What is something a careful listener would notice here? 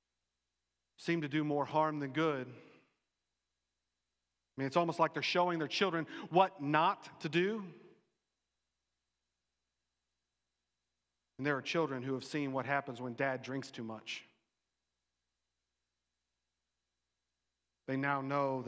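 A middle-aged man speaks with animation through a microphone, pausing between phrases.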